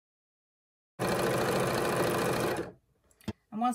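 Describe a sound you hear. A sewing machine whirs steadily as it stitches fabric.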